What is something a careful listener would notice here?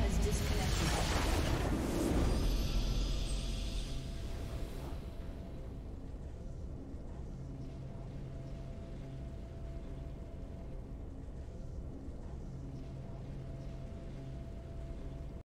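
A triumphant fanfare swells and rings out.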